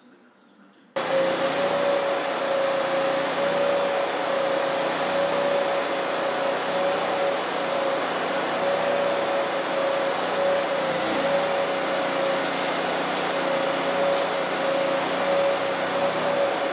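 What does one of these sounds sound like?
An electric welder crackles and hisses steadily with a constant hum.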